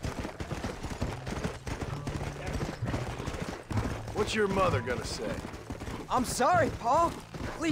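A horse gallops, hooves thudding on snow.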